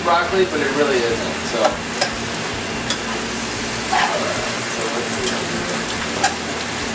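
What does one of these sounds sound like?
Greens sizzle steadily in a hot pan.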